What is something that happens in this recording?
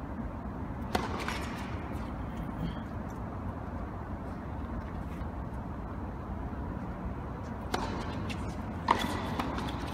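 Tennis rackets strike a ball with sharp pops in a large echoing hall.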